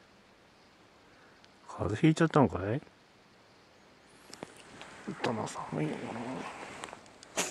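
A cat shifts under a soft blanket with a faint rustle.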